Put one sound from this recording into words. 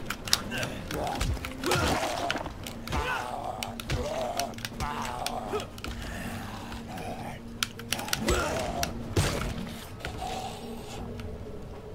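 A zombie groans and snarls.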